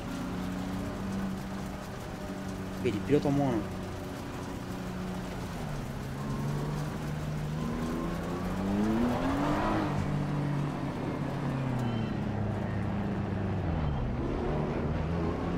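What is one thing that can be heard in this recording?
A racing car engine roars and shifts gears, rising and falling in pitch.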